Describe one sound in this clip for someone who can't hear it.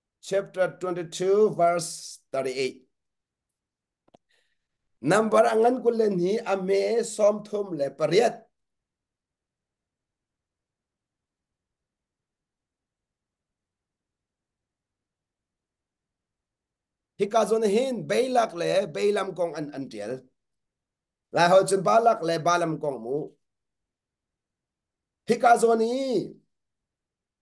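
A man speaks calmly into a close microphone, in short bursts with long pauses.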